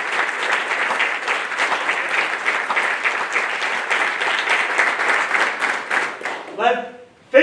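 A group of people applaud.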